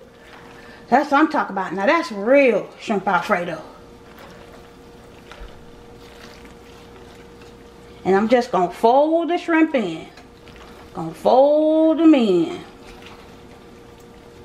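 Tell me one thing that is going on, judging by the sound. A spatula stirs and squelches through saucy pasta in a metal pot.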